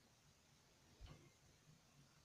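Barbell plates knock on the floor.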